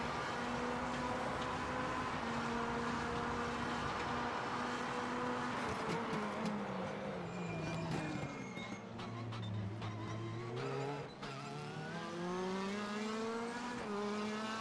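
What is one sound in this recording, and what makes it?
A race car engine roars, its pitch dropping as it slows and rising again as it speeds up.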